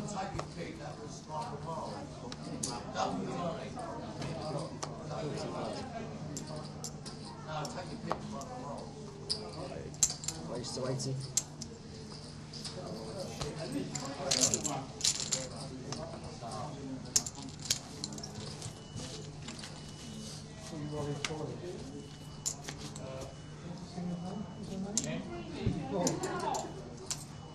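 Several men talk in low voices across a table.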